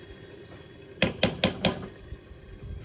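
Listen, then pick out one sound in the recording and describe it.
A metal colander clanks against a pot.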